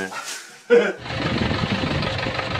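A car engine roars outdoors.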